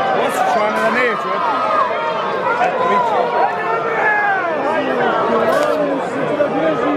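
A crowd of men and women shouts and cheers loudly outdoors.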